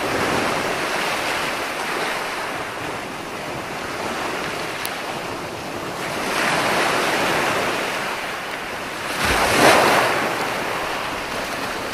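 Foaming water washes up the beach and hisses back.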